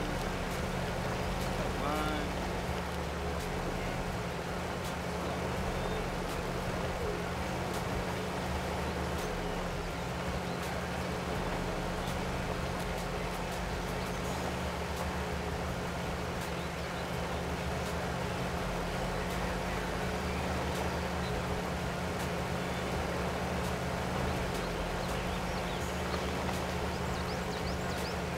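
Tyres crunch over rocks and mud.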